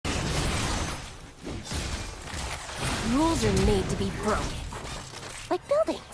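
Magic spells and weapon strikes clash in a fast fight.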